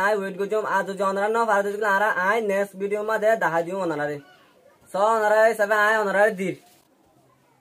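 A young man speaks clearly into a clip-on microphone.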